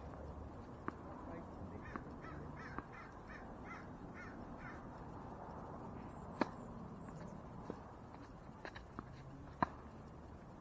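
Paddles sharply pop against a plastic ball, back and forth outdoors.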